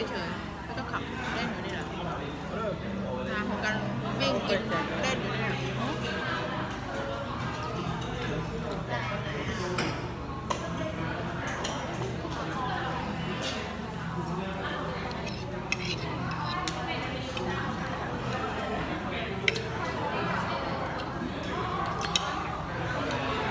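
Many people chatter in a busy, echoing dining room.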